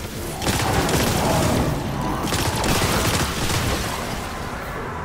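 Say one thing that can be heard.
A large explosion roars and crackles.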